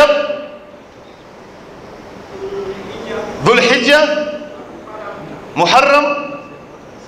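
A man speaks loudly into a microphone, his voice ringing through an echoing room.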